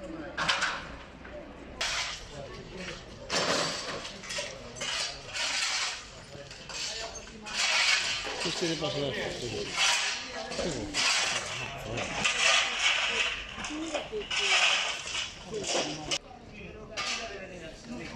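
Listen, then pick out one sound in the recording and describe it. Rubble clatters and scrapes.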